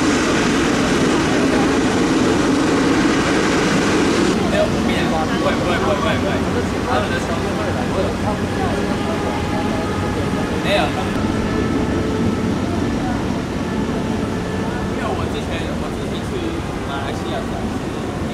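A jet airliner's engines roar steadily close by.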